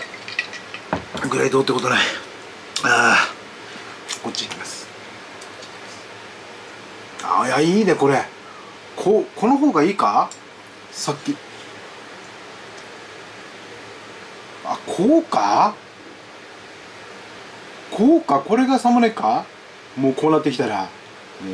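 A middle-aged man talks calmly and close up.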